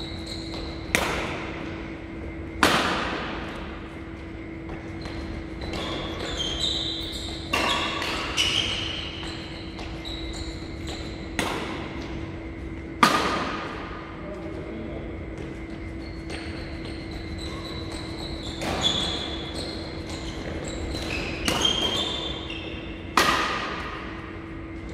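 Badminton rackets smack a shuttlecock back and forth, ringing through a large echoing hall.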